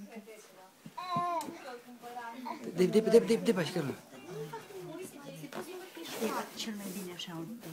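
A baby babbles and squeals.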